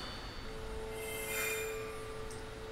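A bright magical chime rings out and fades.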